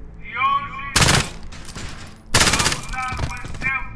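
A rifle fires several loud shots close by.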